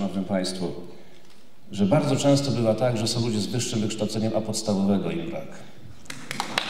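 A man speaks clearly through a microphone in a large hall.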